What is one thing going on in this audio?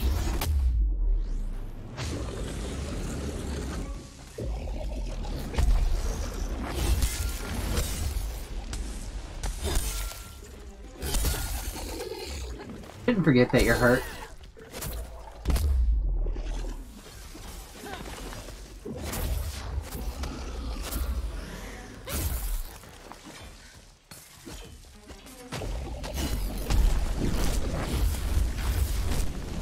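Deep rumbling booms of combat fill the fight.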